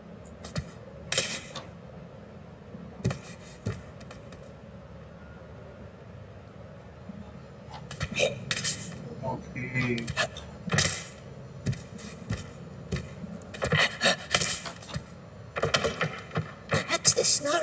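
Hands and feet thump and scrape against wooden beams while climbing.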